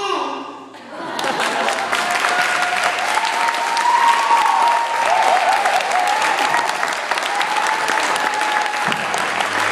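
A group of children sing loudly together.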